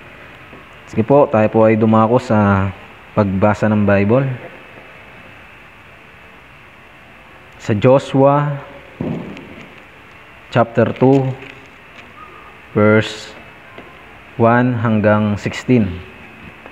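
A young man reads aloud calmly in short phrases, close by.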